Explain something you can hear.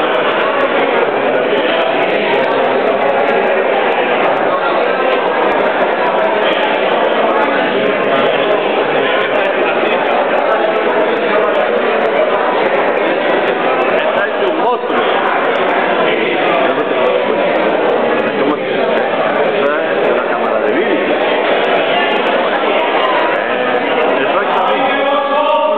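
A large crowd of men and women chatters loudly in an echoing hall.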